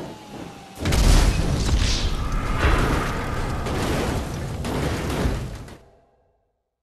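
A vehicle crashes with a loud roaring impact.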